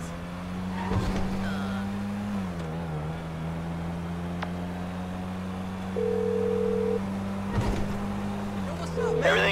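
A car engine hums steadily, dipping in pitch now and then as the car drives.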